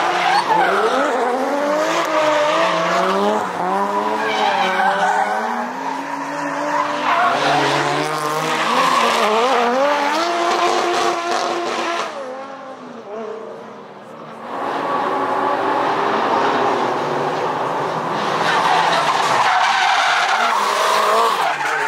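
Race car engines rev hard and roar close by, rising and falling as they slide through a bend.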